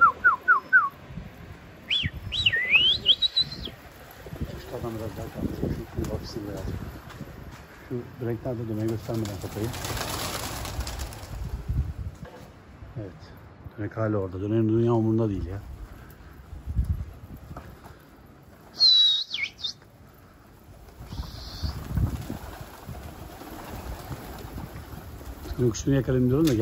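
Many pigeons flap their wings in a clattering burst.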